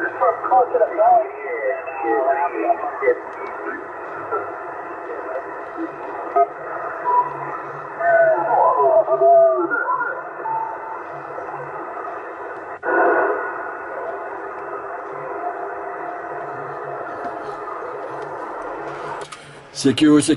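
Static hisses from a radio receiver.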